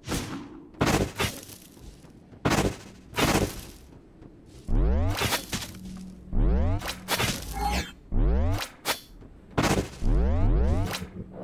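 Sharp magic shots crack out in quick bursts.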